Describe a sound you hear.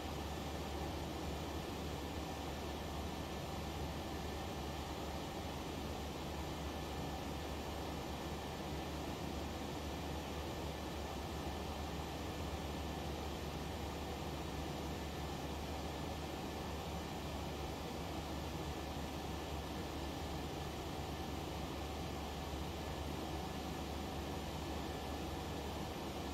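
Jet engines drone steadily and evenly.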